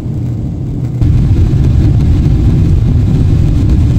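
A jet engine drones steadily from inside an airliner cabin.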